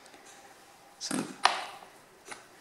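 A metal wrench clatters onto a wooden bench.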